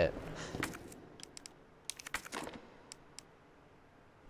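Soft clicks tick as pieces are placed.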